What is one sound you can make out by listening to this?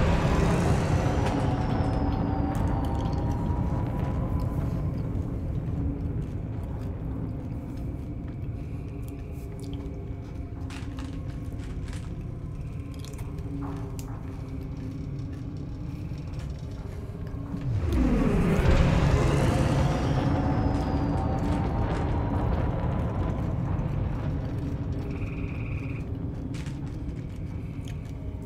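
A deep engine rumbles steadily, swelling into a louder roar partway through.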